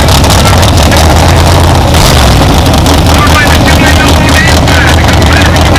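A loud race car engine idles with a deep, lumpy rumble close by.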